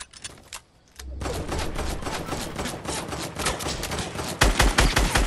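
Quick footsteps thud on grass.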